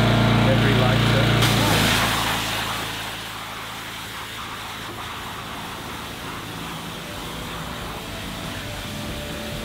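A pressure washer engine hums loudly, then drops to a lower drone.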